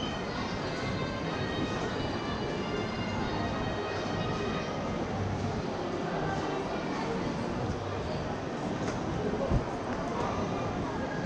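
Many people talk in a low, steady murmur in a large echoing hall.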